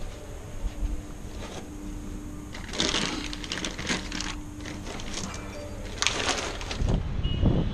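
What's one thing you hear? Hands rustle and shuffle through bags and clothing close by.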